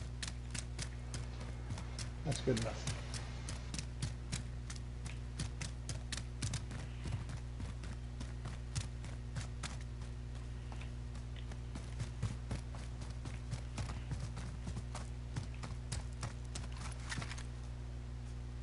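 Quick footsteps patter across hard ground and grass.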